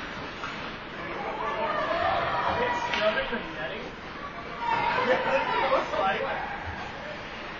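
Players call out in a large echoing rink.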